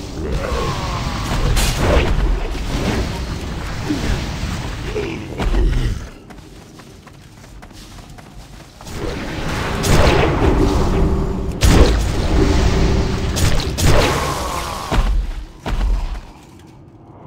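Spell blasts and weapon hits crash and crackle in a game battle.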